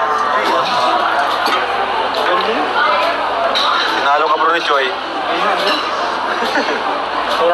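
Young women talk and laugh together close by.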